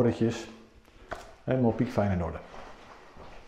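A middle-aged man speaks calmly and close by, through a clip-on microphone.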